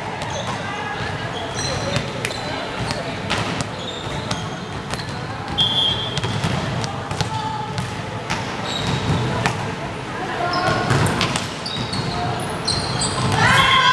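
Players call out to each other across an echoing hall.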